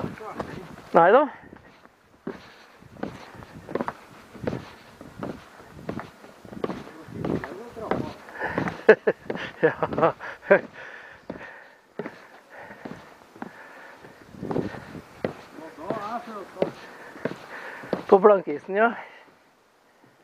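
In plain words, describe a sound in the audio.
Footsteps thud on wooden steps going downhill.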